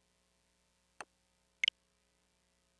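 Two short electronic menu clicks sound in quick succession.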